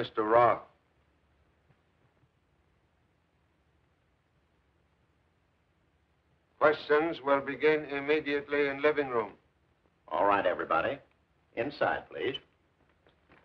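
A middle-aged man speaks with animation, heard close.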